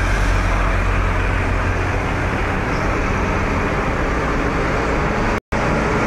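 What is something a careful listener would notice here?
A car engine hums as it passes close by.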